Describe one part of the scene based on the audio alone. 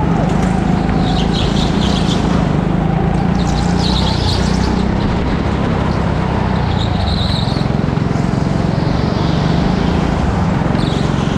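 Go-kart tyres squeal on the track in the corners.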